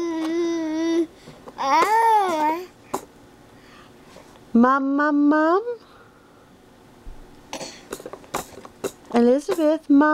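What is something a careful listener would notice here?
A baby coos in drawn-out, high-pitched vocal sounds close by.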